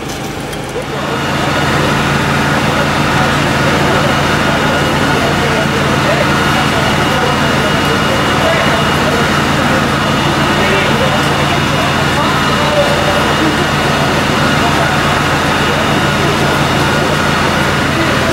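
A crowd of men murmurs around.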